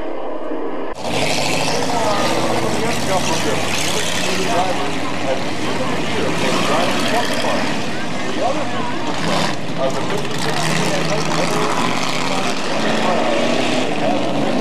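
Race car engines roar as cars speed around a dirt track outdoors.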